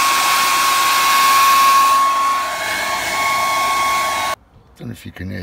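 A hair dryer blows with a loud, steady whine.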